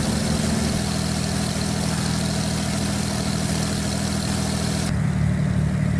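A propeller plane's engine drones steadily from outside.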